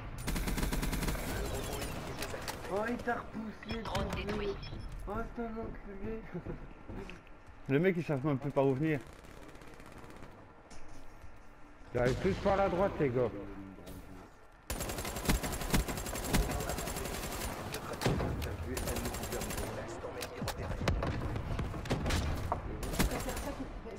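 Automatic gunfire rattles in quick bursts.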